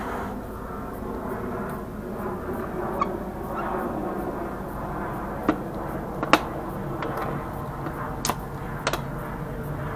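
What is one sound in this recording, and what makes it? Pliers snip and click against small plastic pieces.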